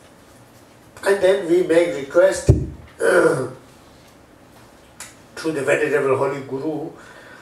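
An older man reads aloud through a clip-on microphone, with pauses.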